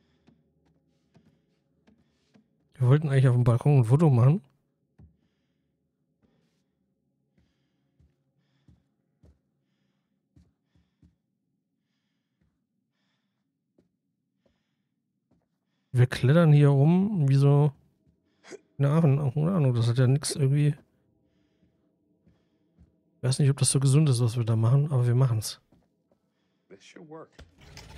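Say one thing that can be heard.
Footsteps tread softly on wooden floorboards.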